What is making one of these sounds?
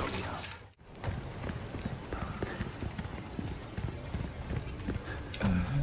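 Footsteps crunch on loose gravel.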